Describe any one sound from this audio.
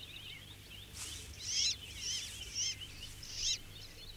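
Nestlings cheep in short high calls.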